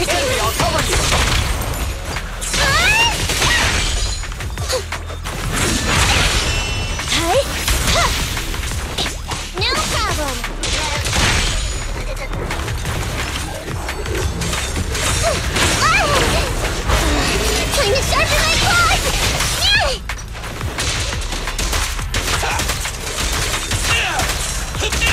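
Game explosions boom and crackle.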